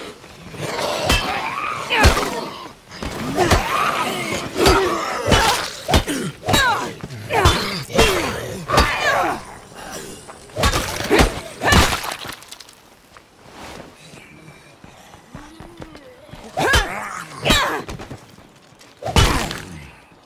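Heavy blows thud and smack against bodies in a fight.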